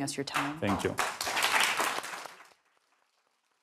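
An audience applauds briefly.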